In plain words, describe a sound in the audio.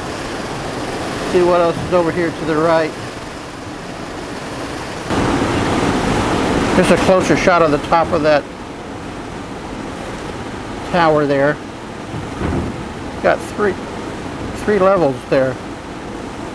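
Water washes steadily on a river.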